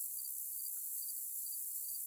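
A woman speaks quietly nearby.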